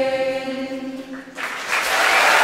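A choir of girls sings a held note in a large hall.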